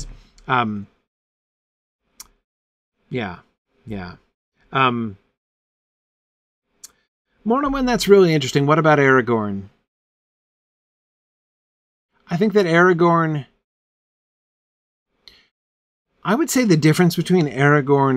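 A middle-aged man speaks expressively and close into a microphone, with pauses.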